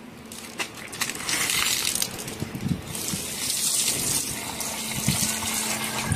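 Water pours from a bucket and splashes.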